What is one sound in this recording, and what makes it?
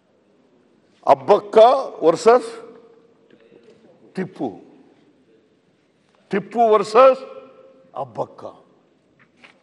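An elderly man speaks into a microphone in bursts, with pauses.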